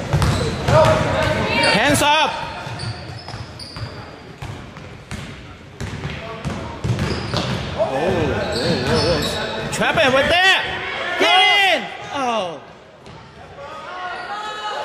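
Spectators call out and cheer loudly nearby.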